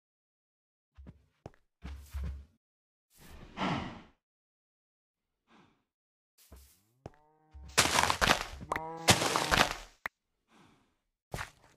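A shovel digs into soil with short crunchy scrapes.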